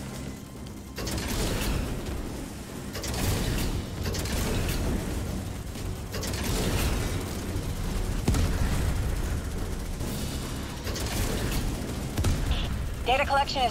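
A heavy gun fires in rapid rattling bursts.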